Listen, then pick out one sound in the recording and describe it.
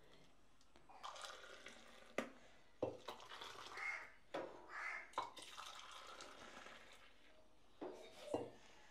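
Metal cups clink and clatter.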